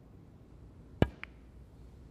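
A cue strikes a snooker ball with a sharp crack.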